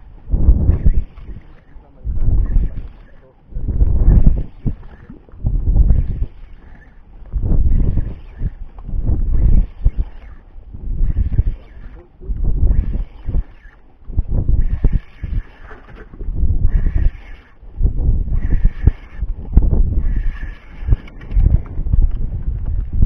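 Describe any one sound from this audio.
A fishing reel whirs in quick, rhythmic bursts as line is wound in.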